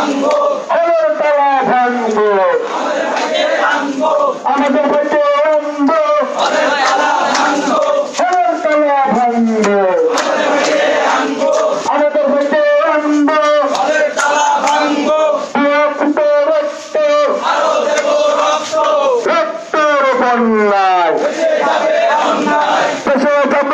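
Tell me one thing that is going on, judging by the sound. A crowd of young men chants loudly in unison nearby, outdoors.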